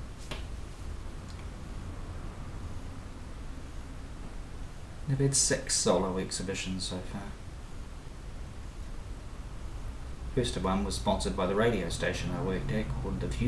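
A brush dabs softly on canvas.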